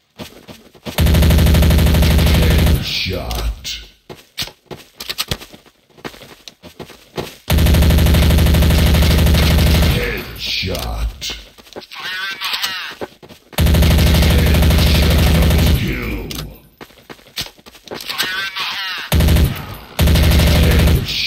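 An automatic gun fires in rapid bursts.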